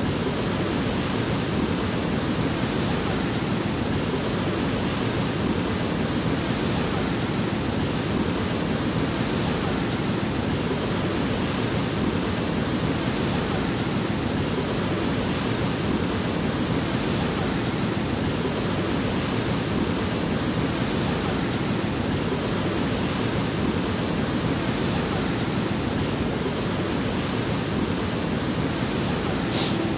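A river rushes loudly over rocks in a steady roar.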